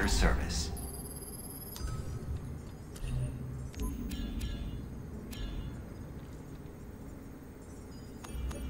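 Short electronic menu beeps and clicks sound.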